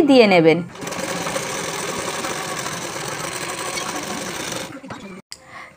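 A sewing machine whirs steadily as it stitches fabric.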